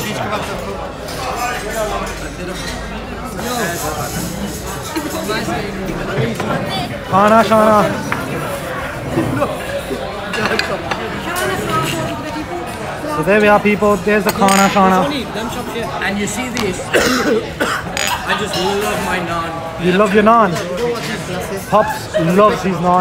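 Diners chatter in a busy room all around.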